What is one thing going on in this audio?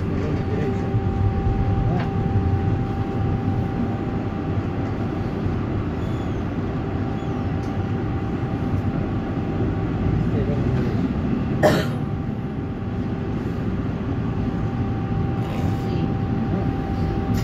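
A tram motor hums steadily with a constant whine.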